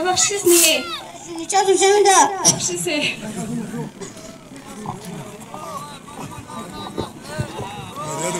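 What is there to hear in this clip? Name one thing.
Many people chatter and call out in the background.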